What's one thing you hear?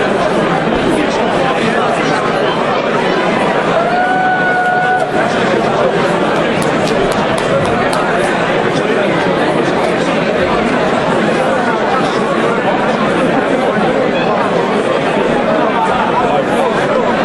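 A crowd chatters and cheers loudly in a large echoing hall.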